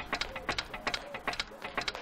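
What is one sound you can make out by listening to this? Heels click on paving.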